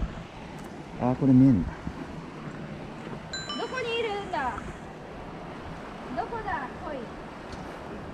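A young woman talks cheerfully nearby.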